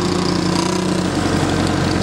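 A motorbike engine putters nearby.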